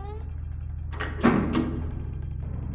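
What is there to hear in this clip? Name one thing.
Elevator doors slide shut with a thud.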